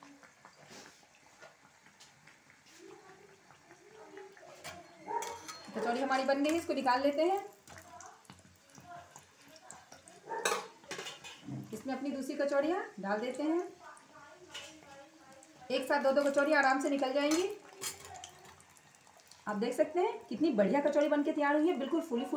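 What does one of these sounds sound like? Hot oil sizzles and bubbles softly.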